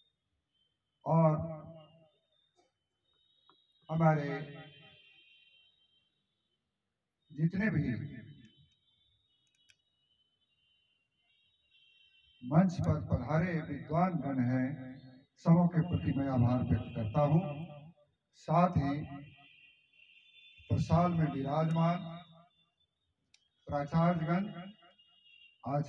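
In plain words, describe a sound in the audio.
An elderly man speaks slowly into a microphone, heard close up, in short phrases with pauses.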